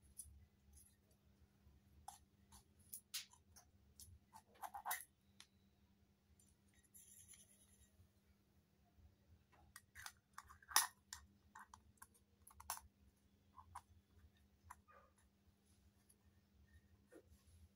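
Small metal pots clink and tap together.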